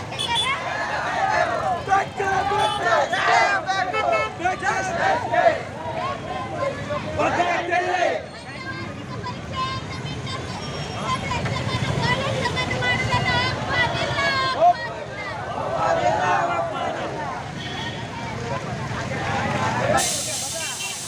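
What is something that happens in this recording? A crowd of young men chant slogans loudly outdoors.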